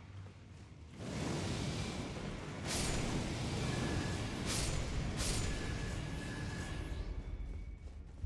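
Fiery flames roar and crackle.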